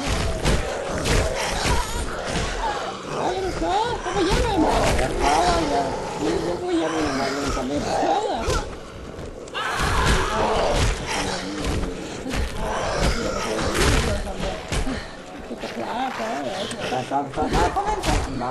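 Heavy blows thud and squelch into bodies, again and again.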